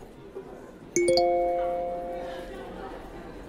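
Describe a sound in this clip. A phone chimes with a short message alert.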